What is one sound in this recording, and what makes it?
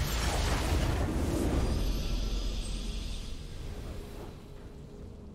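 A triumphant game fanfare swells loudly, then fades away.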